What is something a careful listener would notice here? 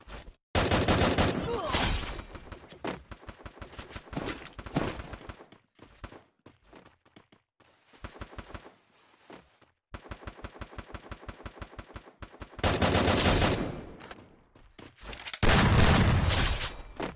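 Video game gunfire cracks in rapid bursts.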